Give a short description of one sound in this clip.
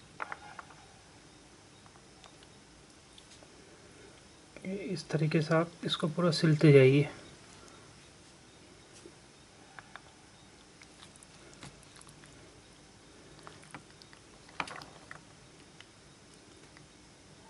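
A pomegranate's skin tears as hands pull it apart.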